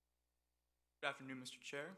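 Another man speaks into a microphone.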